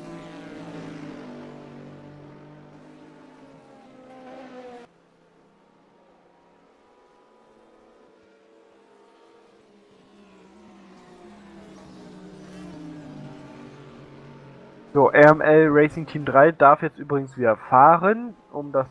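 Racing car engines roar and whine as the cars speed past.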